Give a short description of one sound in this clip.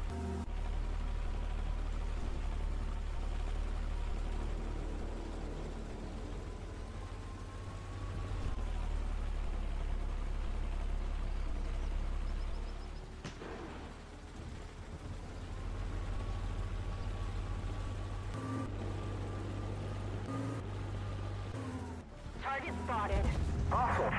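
A heavy tank engine rumbles low and steady.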